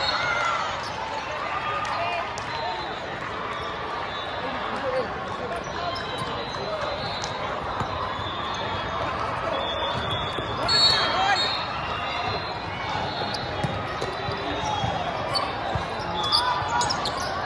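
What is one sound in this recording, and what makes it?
Many voices chatter and call out across a large echoing hall.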